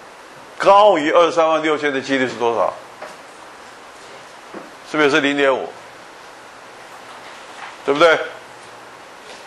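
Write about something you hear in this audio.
An older man speaks in short bursts through a microphone, in a lecturing tone.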